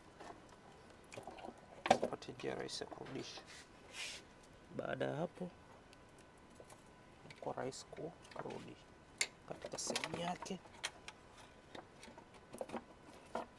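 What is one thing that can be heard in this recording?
Hands click and rattle plastic parts on a car engine.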